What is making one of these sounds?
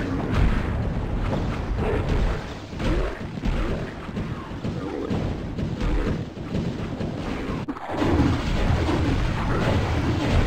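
An axe swings and strikes flesh with heavy thuds.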